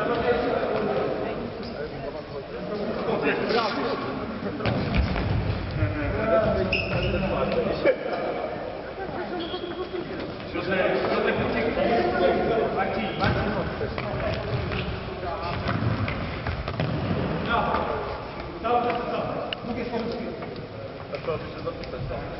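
A ball thumps off a hard floor and is kicked.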